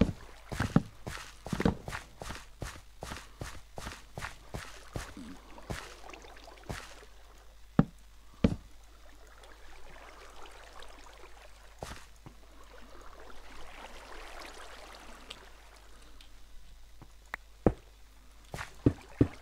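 Quick knocking and clicking sounds repeat as blocks are dug and placed in a game.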